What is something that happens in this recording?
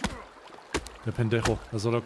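An axe chops into a tree trunk.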